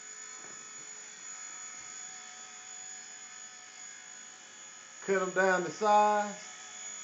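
A small toy helicopter's rotor whines steadily at a high pitch.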